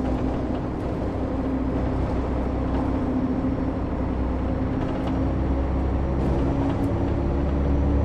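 Bus tyres rumble over cobblestones.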